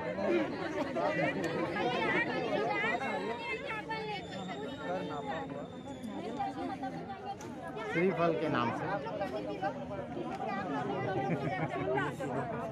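A crowd of men and women chant and talk loudly together outdoors.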